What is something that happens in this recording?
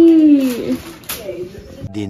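Wrapping paper rustles as a young child pulls at a gift.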